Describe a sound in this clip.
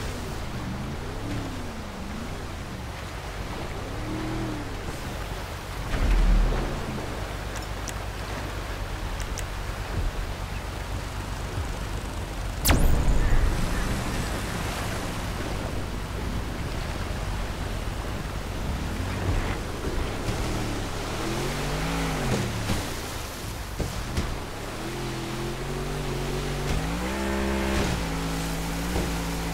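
A speedboat engine roars as the boat races across water.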